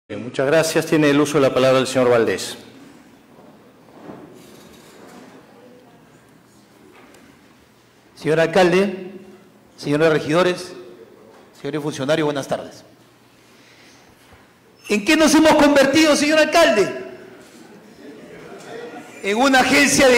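A man speaks through a microphone in bursts, echoing in a large hall.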